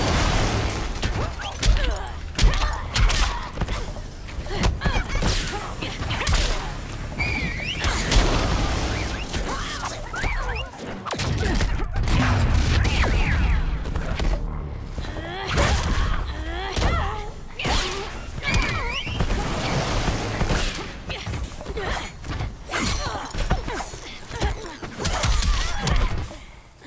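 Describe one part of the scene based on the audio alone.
Punches and kicks land with sharp thuds and smacks.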